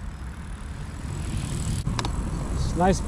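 A bicycle rolls past close by over wooden boards.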